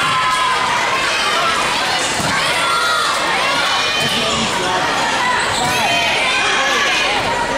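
A volleyball is struck by hand.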